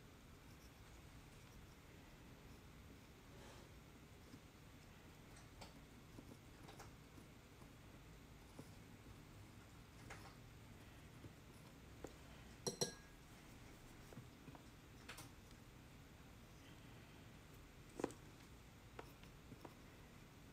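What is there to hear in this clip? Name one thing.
A metal tool scrapes and taps against a dry clay pot.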